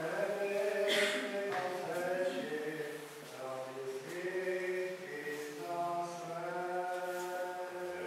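Men chant slowly in a reverberant hall.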